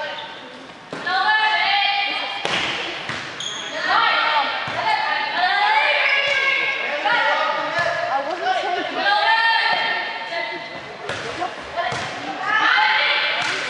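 A crowd of girls cheers and shouts loudly.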